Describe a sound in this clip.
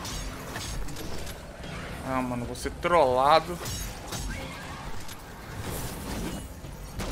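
Game weapons fire and clash with sharp blasts.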